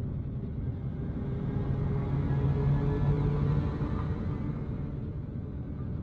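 A spacecraft engine swells to a louder roar, then eases back.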